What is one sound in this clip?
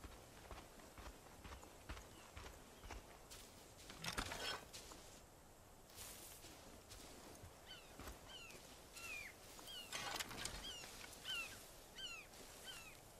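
Footsteps rustle through grass and undergrowth at a steady walking pace.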